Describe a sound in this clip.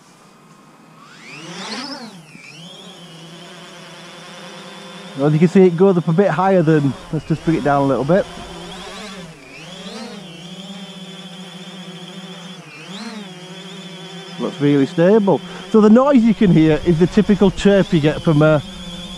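Drone rotors spin up with a rising whine, then buzz steadily close by.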